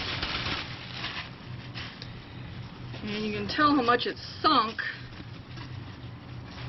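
A plastic sheet rustles and scrapes over soil.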